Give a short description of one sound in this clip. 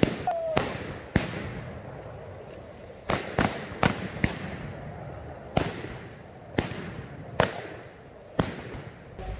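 Rifle shots crack one after another outdoors and echo off the trees.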